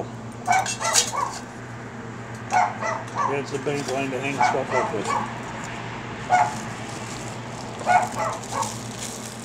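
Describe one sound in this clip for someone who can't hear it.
Metal parts of a canister clink and scrape in a man's hands.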